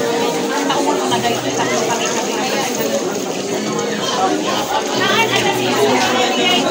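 A large crowd of men, women and children chatters loudly outdoors.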